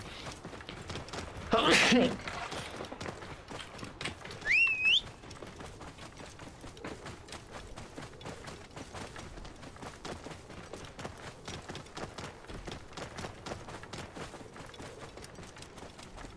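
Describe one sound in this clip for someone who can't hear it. A camel's hooves plod on dry ground.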